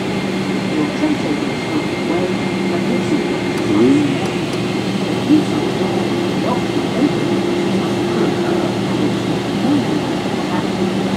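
An aircraft engine hums steadily inside a plane cabin as it taxis.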